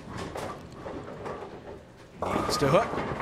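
A bowling ball rolls down a wooden lane.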